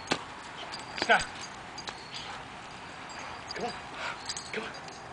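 A dog barks and yelps in short bursts close by.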